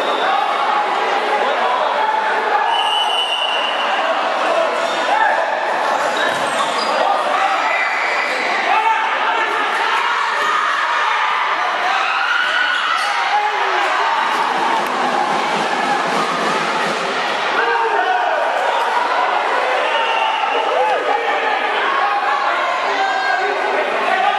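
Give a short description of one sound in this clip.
Sneakers squeak sharply on a hard court floor.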